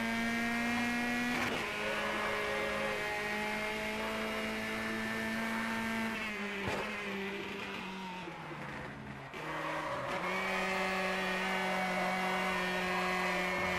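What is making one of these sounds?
A racing car engine roars at high revs, shifting gears and dropping in pitch as it slows.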